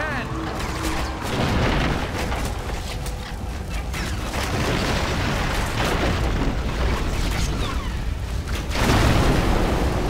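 Ships' guns fire with loud booms.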